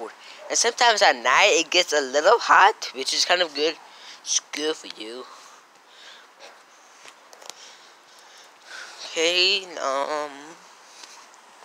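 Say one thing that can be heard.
A boy talks animatedly close to the microphone.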